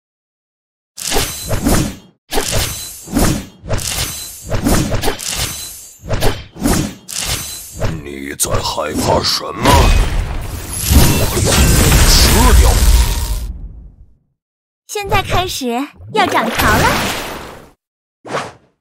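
Game battle sounds clash with hits and blasts.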